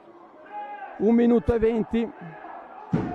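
Men shout to each other in a large echoing sports hall.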